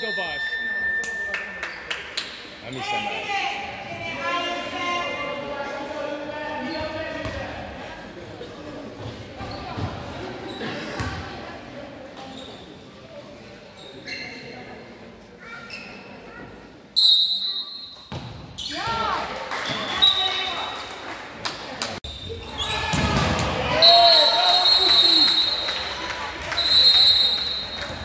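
Young girls shout and call out to each other.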